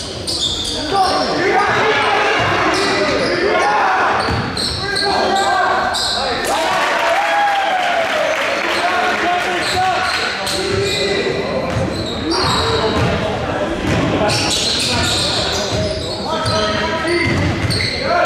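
Young players shout and call to each other in a large echoing hall.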